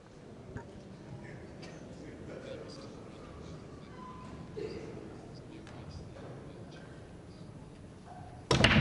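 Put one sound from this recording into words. A small indoor crowd murmurs softly in the background.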